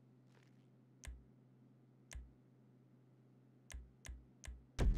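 Short digital menu clicks sound as a selection moves.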